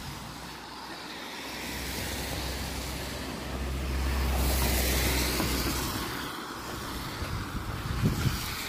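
Cars drive past on a wet road, tyres hissing.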